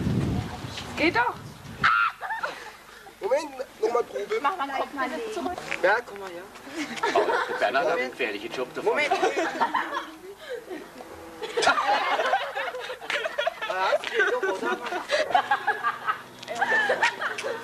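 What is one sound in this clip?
Young people talk with animation nearby, outdoors.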